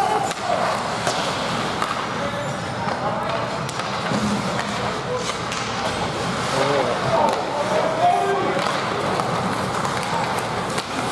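A crowd of people talk nearby in a large echoing hall.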